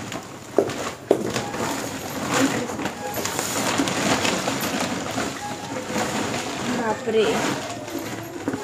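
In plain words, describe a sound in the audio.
Leafy greens rustle as they are sorted by hand.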